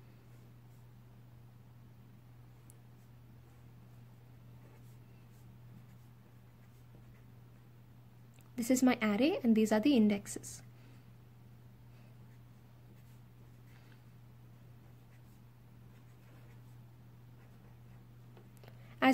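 A felt-tip pen squeaks and scratches softly on paper.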